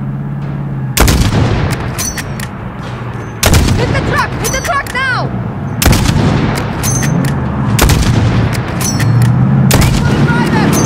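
A rifle fires loud, sharp shots that echo.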